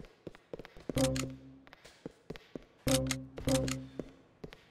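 Heavy punches thud against a body.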